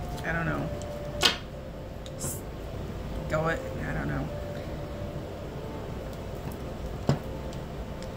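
Cards shuffle and tap together in a young woman's hands.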